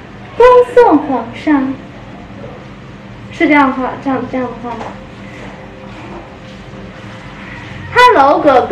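A young woman speaks brightly and with animation close to the microphone.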